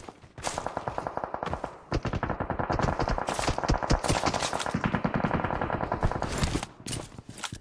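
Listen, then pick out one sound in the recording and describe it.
Footsteps thud quickly on a hard surface.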